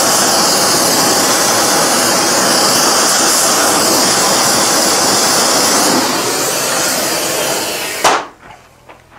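A gas torch roars loudly with a steady rushing hiss.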